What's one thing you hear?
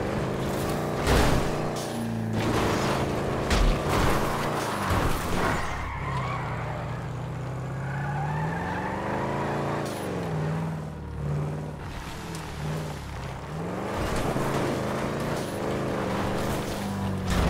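Tyres crunch over dry brush and dirt.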